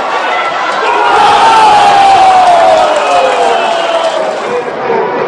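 A crowd roars and cheers loudly.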